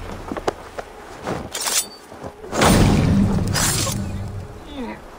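A blade strikes a guard with sharp, heavy blows.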